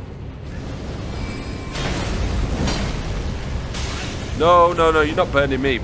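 Flames roar and whoosh.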